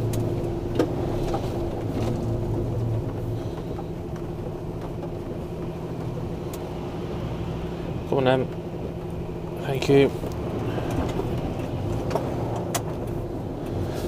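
A windscreen wiper sweeps across the glass.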